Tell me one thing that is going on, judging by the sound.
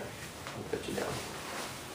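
A man rustles fabric in his hands.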